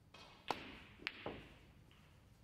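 Snooker balls knock together with a crisp clack.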